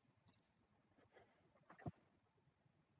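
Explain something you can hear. Game pieces click into place on a board.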